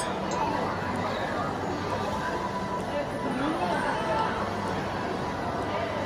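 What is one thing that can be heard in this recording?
A crowd of people chatters in a busy indoor hall.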